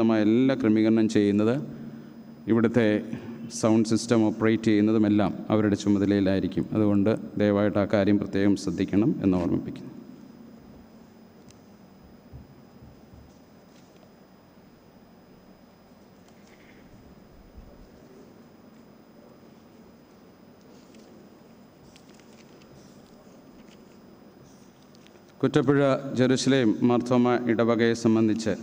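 A man sings slowly through a microphone, with a slight echo.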